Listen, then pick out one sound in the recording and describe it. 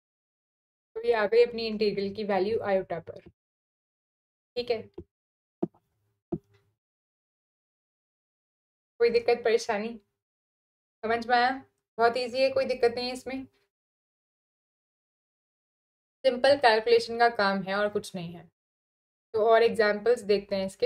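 A young woman speaks calmly and clearly into a close microphone, in bursts with pauses.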